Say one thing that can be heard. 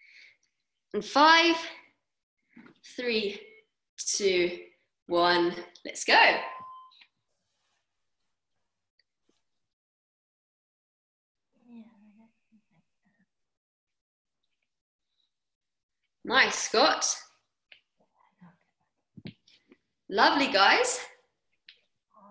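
A young woman talks calmly and with pauses, close to a microphone on an online call.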